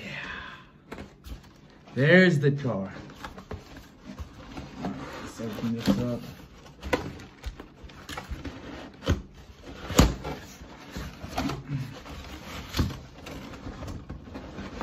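Fingers tap and scratch on a cardboard box.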